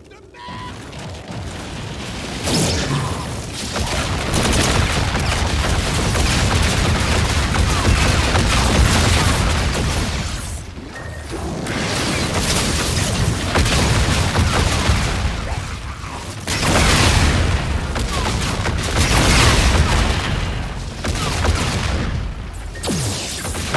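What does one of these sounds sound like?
Rapid gunfire and heavy explosions roar loudly.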